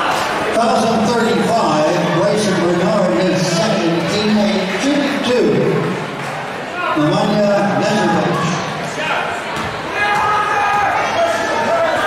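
A crowd of spectators chants loudly in a large echoing hall.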